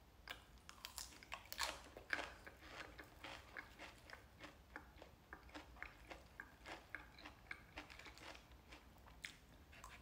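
A young man chews a mouthful of salad close to a microphone.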